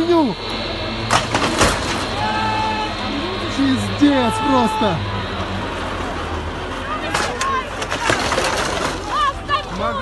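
Women and men scream in panic nearby.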